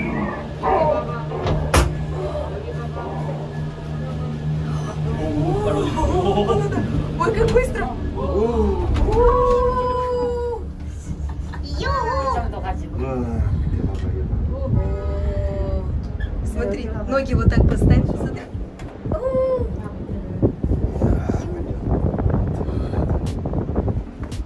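A cable car rumbles and hums steadily as it moves.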